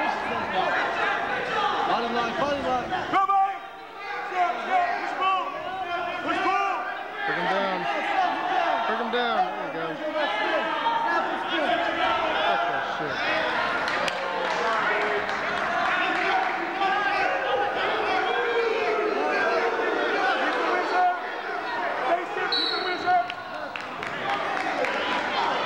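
A crowd of spectators cheers and shouts loudly in an echoing hall.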